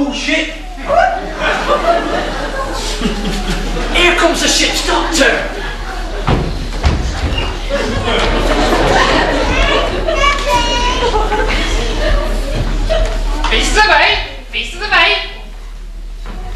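Children speak loudly and shout in a large echoing hall.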